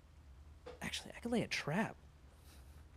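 A young man talks excitedly into a close microphone.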